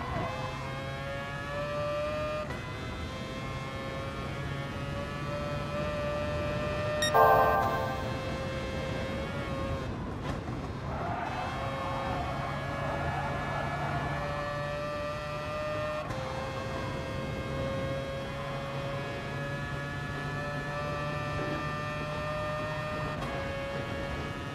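A race car engine revs high and shifts through the gears.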